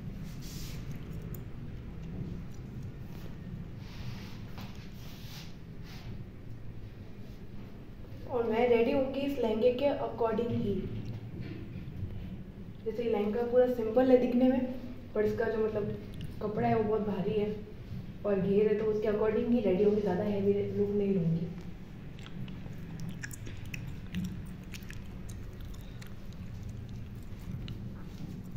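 A powder puff dabs softly against skin.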